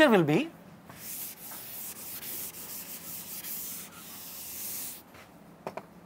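A duster rubs across a board.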